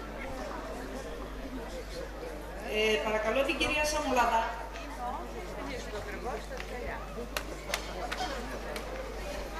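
An audience murmurs quietly.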